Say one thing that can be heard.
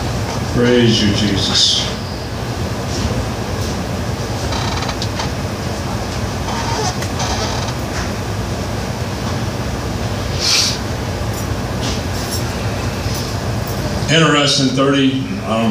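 A man speaks through a microphone and loudspeakers in a large room.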